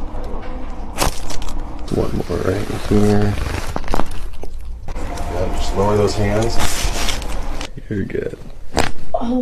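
Joints crack with sharp pops.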